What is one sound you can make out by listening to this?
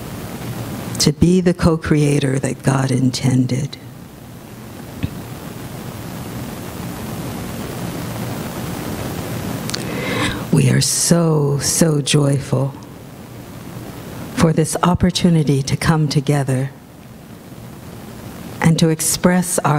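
A middle-aged woman speaks calmly into a microphone, heard through a loudspeaker, with pauses between phrases.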